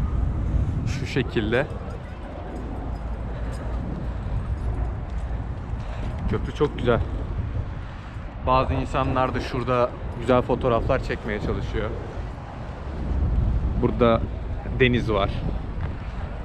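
A woman and men talk nearby.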